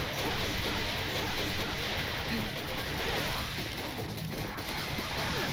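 A sword slashes and clangs against a creature.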